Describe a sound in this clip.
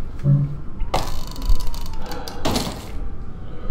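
A crowbar pries open a wooden crate with a creak and crack.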